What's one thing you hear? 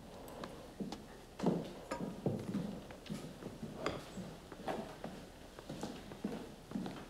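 Dishes and cutlery clink on a table.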